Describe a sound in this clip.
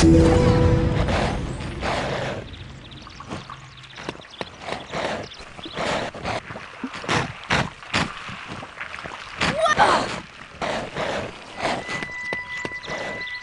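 Footsteps patter steadily along the ground.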